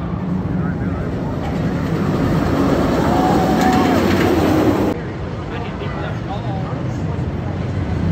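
Riders scream in the distance on a roller coaster.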